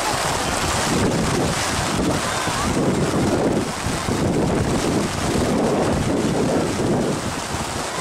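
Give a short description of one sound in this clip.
Wind gusts roughly against the microphone.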